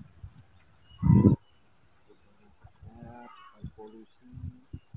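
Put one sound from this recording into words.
A sheep bleats nearby.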